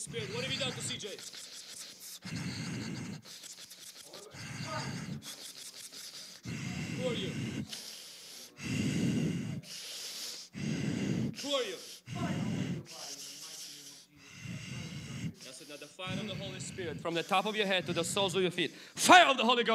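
A young man speaks emotionally into a microphone, heard through loudspeakers in a large room.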